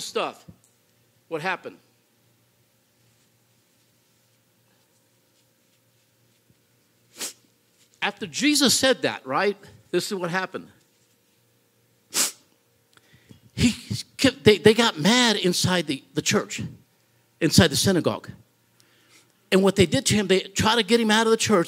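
A man talks with animation into a microphone, with pauses.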